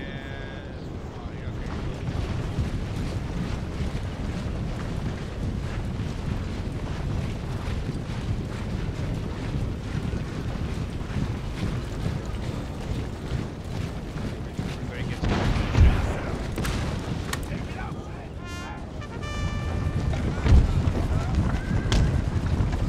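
Many soldiers march together in a low, steady rumble of footsteps.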